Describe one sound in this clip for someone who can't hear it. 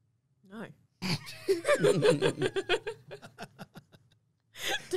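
A man laughs loudly into a microphone.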